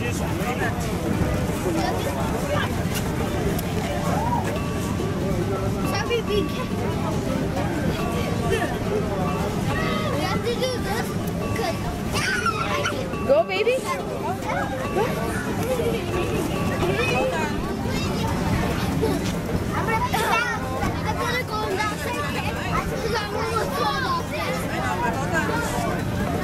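Children chatter and shout in a noisy outdoor crowd.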